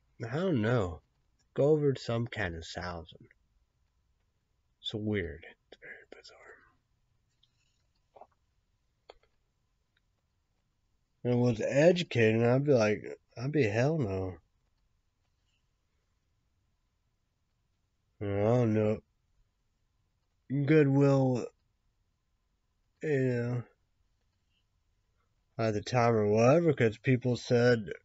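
A young man speaks calmly close to a microphone in short bursts.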